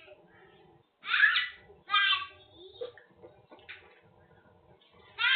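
A young child squeals and babbles loudly nearby.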